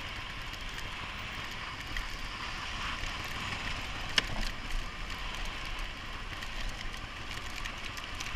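Wind rushes past a helmet.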